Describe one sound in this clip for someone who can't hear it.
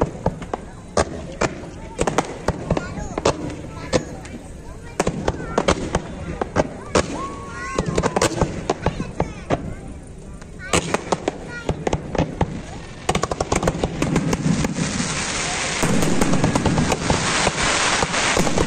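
Fireworks bang and crackle overhead.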